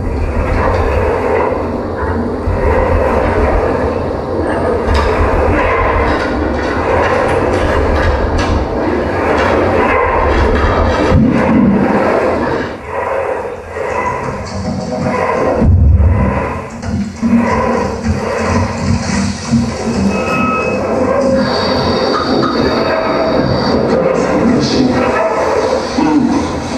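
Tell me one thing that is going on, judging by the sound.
A man plucks and scrapes the strings of an instrument lying flat on a table.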